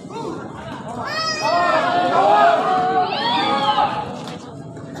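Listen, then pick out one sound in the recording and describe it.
Spectators shout and cheer excitedly nearby.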